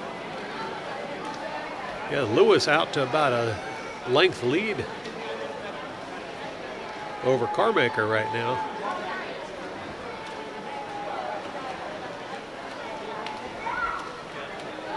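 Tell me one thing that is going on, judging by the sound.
Water splashes as swimmers swim.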